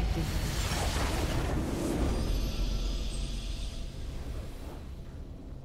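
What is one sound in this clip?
A bright victory fanfare blares loudly and then fades.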